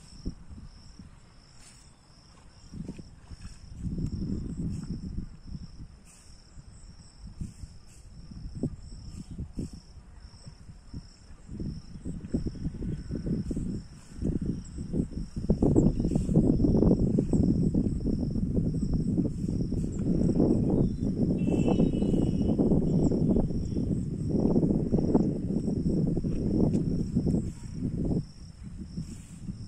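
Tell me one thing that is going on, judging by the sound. Tall rice plants rustle as a man wades through them.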